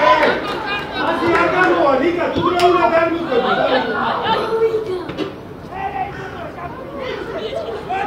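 Spectators talk and cheer nearby.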